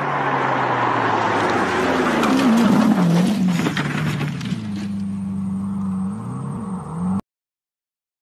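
A sports car engine roars loudly as the car speeds past.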